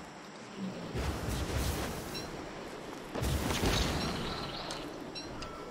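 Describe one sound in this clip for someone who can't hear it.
A whirlwind whooshes in gusty bursts.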